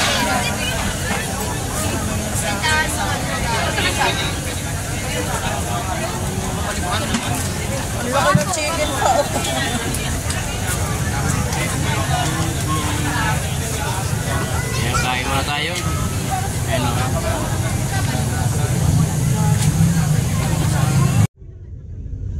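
A crowd of people chatters nearby, outdoors.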